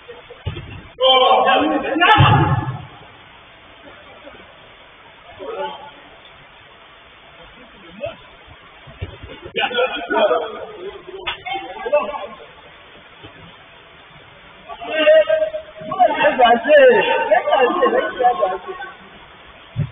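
Men shout and call out to each other across a large enclosed pitch.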